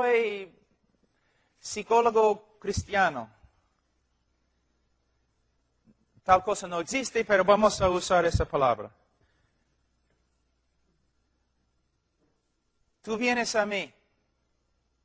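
A man speaks calmly in short bursts with long pauses.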